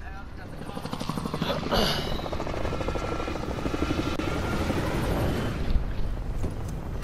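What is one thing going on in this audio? Helicopter rotors thump loudly overhead.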